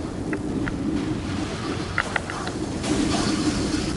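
Fire bursts with a crackling roar.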